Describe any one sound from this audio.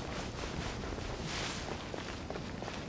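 Leaves rustle as something pushes through bushes.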